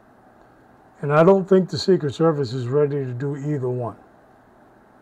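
A middle-aged man speaks calmly into a microphone, heard as if over an online call.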